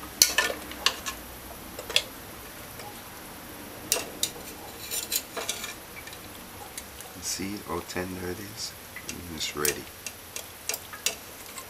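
Thick liquid sloshes as food is lifted from a pot.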